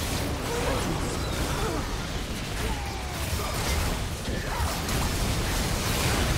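Magic blasts and spell effects crackle and boom in a hectic game battle.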